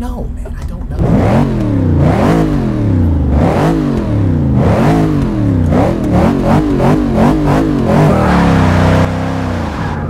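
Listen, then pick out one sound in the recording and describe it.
A race car engine revs hard up and down again and again.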